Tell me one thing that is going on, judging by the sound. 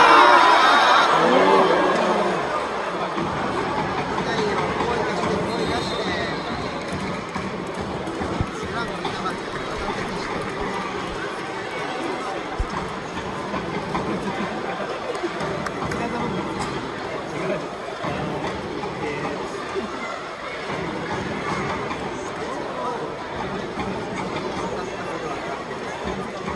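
Spectators chatter nearby in the stands.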